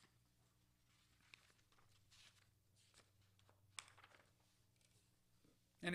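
Paper rustles as a man turns pages.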